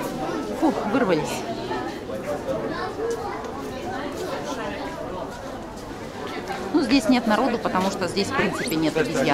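A crowd of adults and children chatter nearby in an echoing indoor hall.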